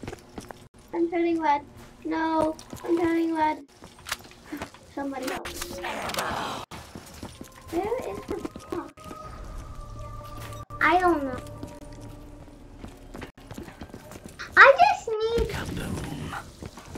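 A young boy talks excitedly close to a microphone.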